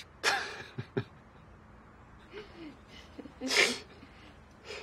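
A man laughs softly close by.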